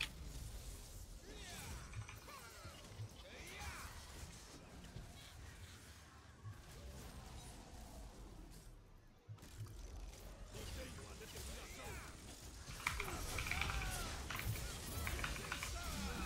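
Game sound effects of spells and strikes clash and crackle.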